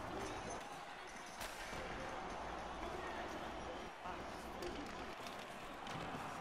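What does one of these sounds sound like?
Ice skates scrape and carve across ice.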